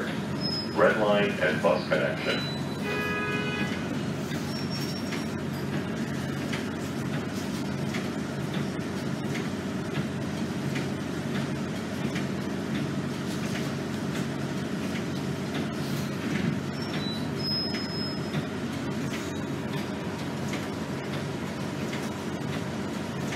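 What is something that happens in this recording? A bus rattles and creaks as it rolls over the road.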